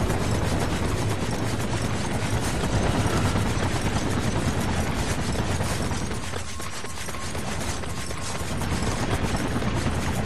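Footsteps run on hard ground.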